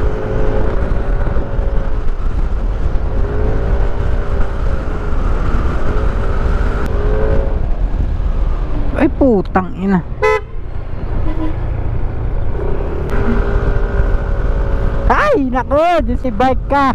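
A motor scooter engine hums steadily while riding.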